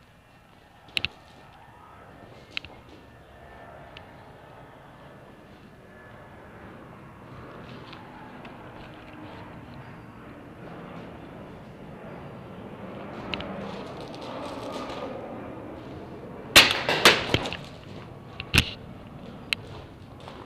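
Paintball markers fire sharp pops, echoing in a large hall.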